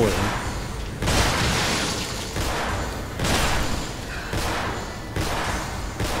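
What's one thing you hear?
Explosions boom in quick bursts.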